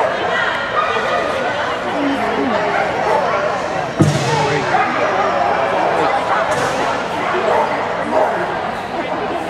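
A man calls out commands to a dog in a large echoing hall.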